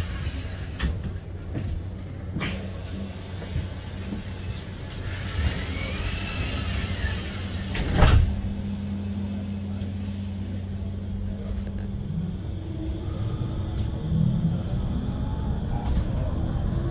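A vehicle rumbles and hums steadily as it drives along a street.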